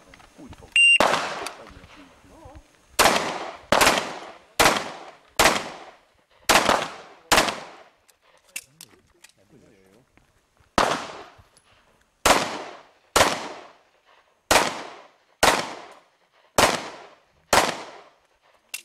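A pistol fires loud shots in quick bursts outdoors, each ringing out and echoing briefly.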